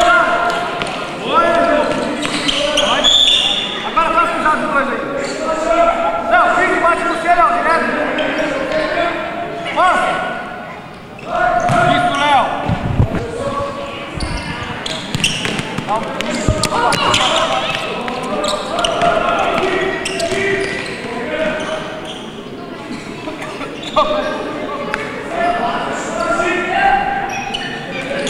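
Children shout and call out in an echoing indoor hall.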